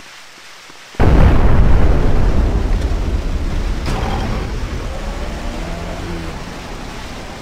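A truck engine rumbles loudly as it drives off.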